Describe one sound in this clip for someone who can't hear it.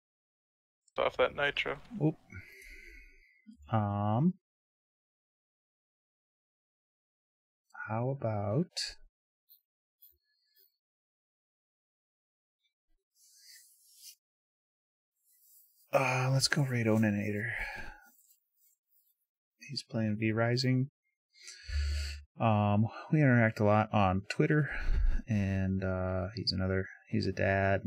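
A man speaks calmly into a close microphone, in short bursts with pauses.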